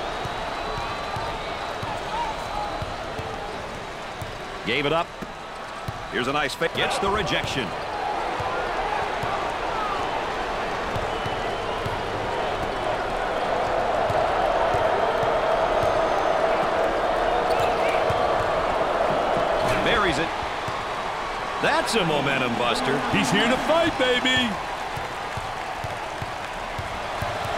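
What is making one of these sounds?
A crowd murmurs and cheers steadily in a large echoing arena.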